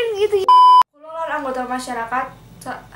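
A young woman speaks tensely.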